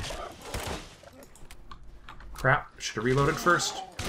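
A rifle clicks and clacks as it is reloaded.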